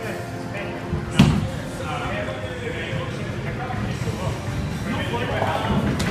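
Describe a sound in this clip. A bowling ball rolls down a wooden lane with a low rumble.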